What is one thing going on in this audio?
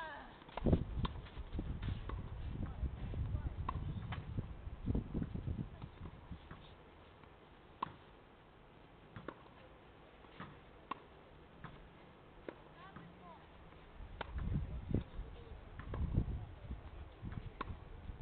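A tennis ball is struck with a racket, with sharp pops at intervals.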